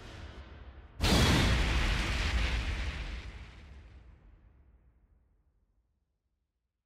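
A deep boom crashes out and rumbles away.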